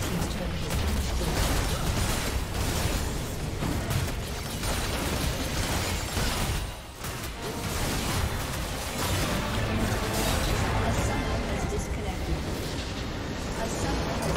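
Game spells and attacks crackle and boom in a hectic battle.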